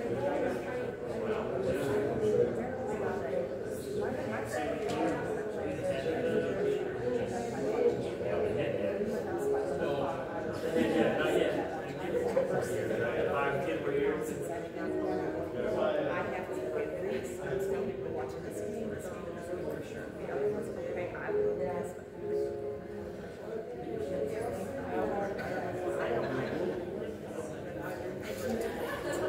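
A crowd of adult men and women chat among themselves in a large echoing hall.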